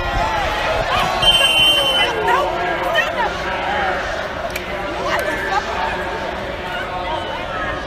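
Women players shout and scream as they scuffle.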